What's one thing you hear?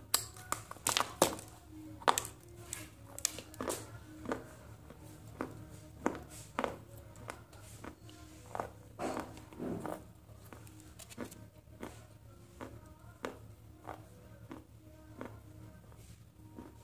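A girl chews food loudly and wetly close to a microphone.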